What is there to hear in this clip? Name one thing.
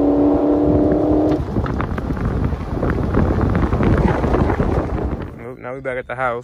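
A car engine roars loudly as the car drives off.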